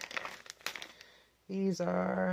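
Plastic food packaging crinkles and rustles.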